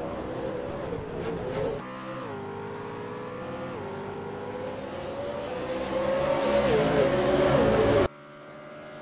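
A V8 race car engine screams at high revs and drops in pitch with each upshift.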